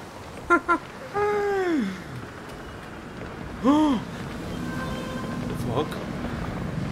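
A man exclaims loudly in short drawn-out cries into a nearby microphone.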